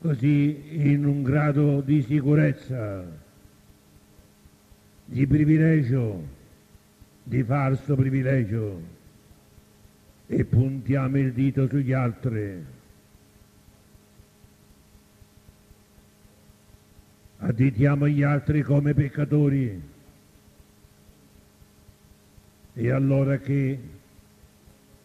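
An elderly man speaks calmly through a microphone in short phrases with long pauses.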